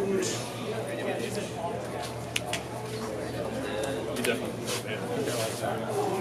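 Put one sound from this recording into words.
Playing cards tap and slide onto a table.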